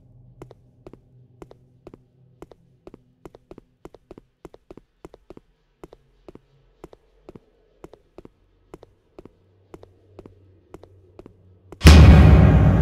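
Quick footsteps tap along a hard floor.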